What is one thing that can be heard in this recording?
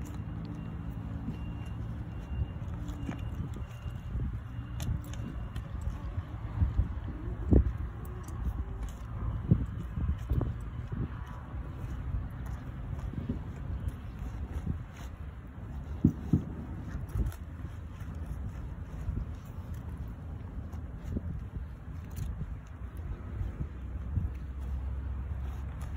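Sneakers stomp and scuff on dry gravelly ground.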